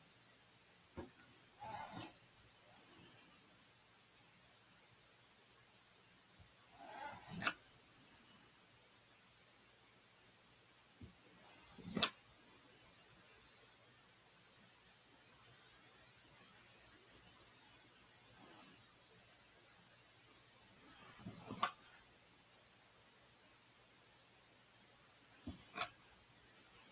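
A small tool scrapes and taps on a hard surface now and then.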